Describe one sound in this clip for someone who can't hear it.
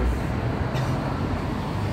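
An elderly man speaks through a headset microphone.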